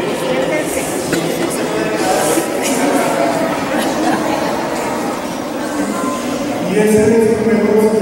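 A string ensemble plays a slow melody.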